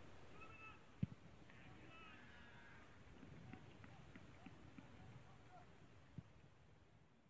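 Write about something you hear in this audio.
A football is kicked on an outdoor pitch.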